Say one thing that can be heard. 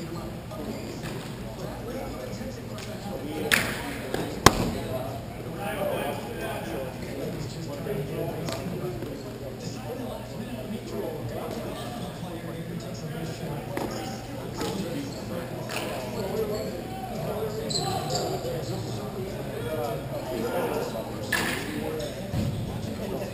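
Skates roll and scrape over a hard floor.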